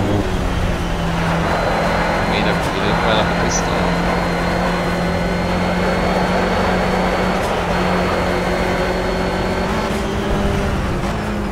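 A four-cylinder race car engine drones at high revs from inside the cockpit.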